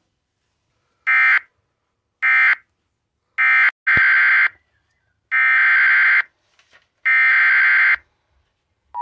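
Short bursts of harsh, buzzing electronic data tones play through a loudspeaker.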